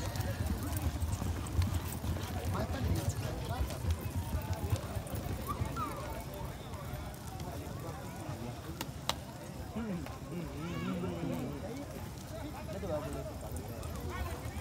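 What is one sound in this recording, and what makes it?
Horses gallop with thudding hooves on soft dirt.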